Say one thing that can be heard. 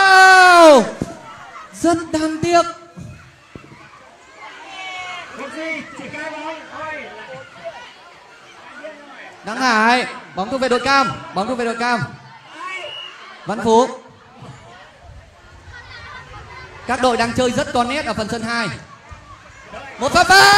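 Children splash and thrash about in water.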